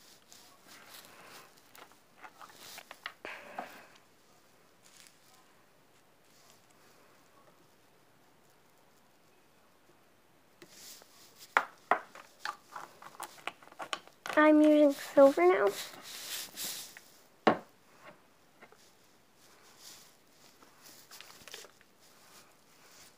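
A plastic bottle crinkles and crackles in a girl's hands.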